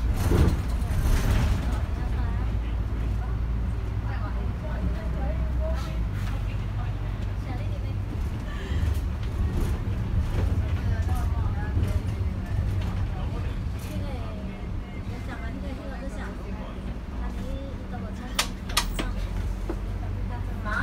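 A bus engine rumbles low and steady from inside the cabin.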